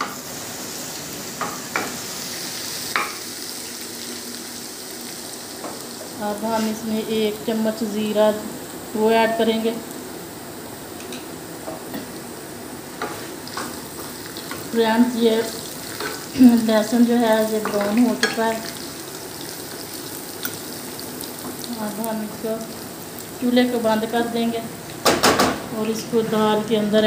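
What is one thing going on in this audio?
Oil sizzles softly in a frying pan.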